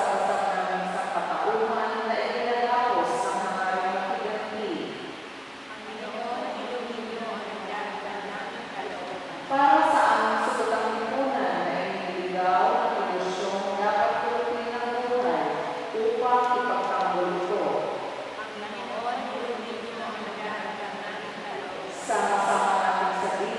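A man chants slowly through a loudspeaker in a large echoing hall.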